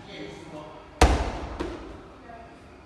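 A medicine ball drops and bounces on a rubber floor.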